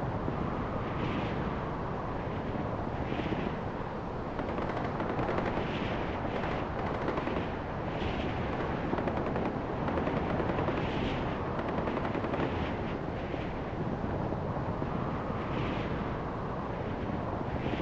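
Wind rushes steadily past a hang glider in flight.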